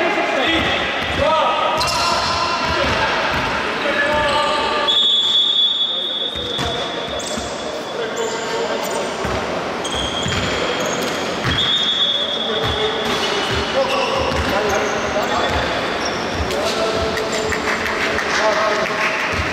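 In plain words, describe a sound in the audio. Men shout and call out to each other across the hall.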